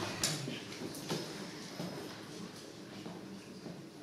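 A young man laughs nearby.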